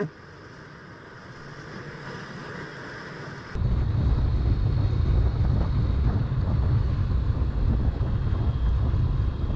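A motorcycle engine hums as the bike rides along.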